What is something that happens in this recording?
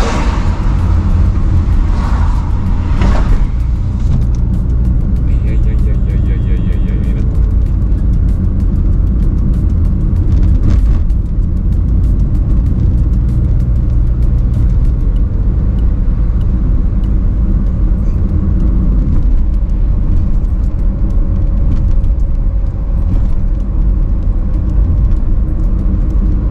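A car drives steadily along a road, with a low rumble of engine and tyres.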